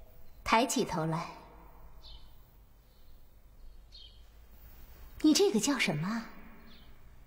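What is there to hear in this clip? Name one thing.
A woman speaks sternly and clearly.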